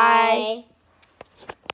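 A young boy shouts close up.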